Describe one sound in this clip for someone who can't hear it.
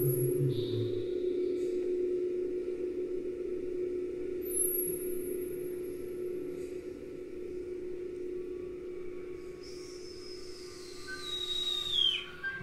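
An electric guitar sustains a steady, humming drone.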